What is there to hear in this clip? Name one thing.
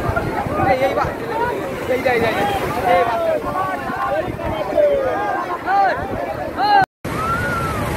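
A crowd shouts and screams excitedly outdoors.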